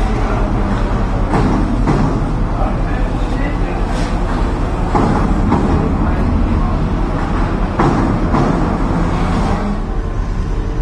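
A high-speed train rolls by on the tracks.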